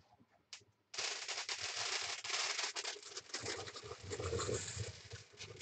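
A fire suddenly flares up with a loud rushing roar.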